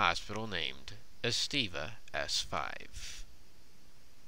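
A young man speaks calmly into a close headset microphone.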